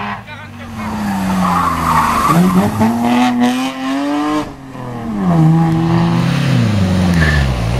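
A car engine revs hard, its pitch rising and falling through gear changes.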